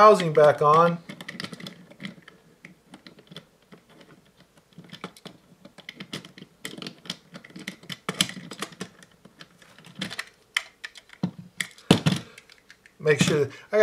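Plastic parts click and rattle as they are twisted and pulled apart by hand.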